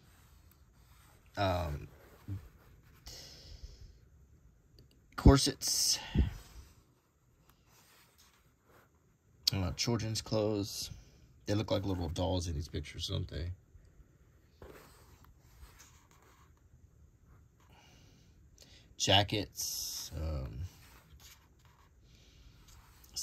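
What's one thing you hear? Stiff paper pages rustle as they are turned one after another.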